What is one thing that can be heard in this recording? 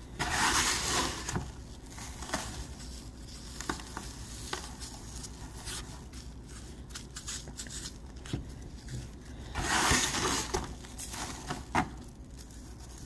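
Coarse grit rustles and hisses as it is poured and rubbed over a foam block.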